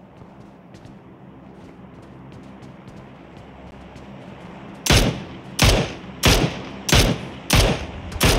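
Footsteps thud on a hard floor indoors.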